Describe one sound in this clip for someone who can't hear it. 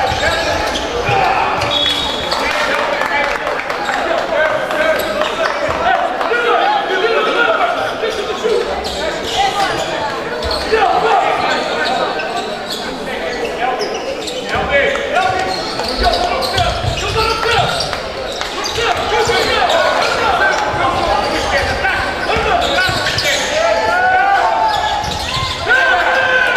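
A crowd of men and boys chatters and calls out across an echoing hall.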